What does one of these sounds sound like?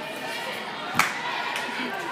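A gymnast drops down and lands on a mat with a thud.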